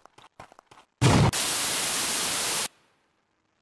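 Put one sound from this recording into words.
A loud explosion bursts with a rushing roar.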